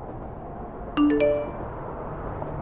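A phone chimes with a message tone.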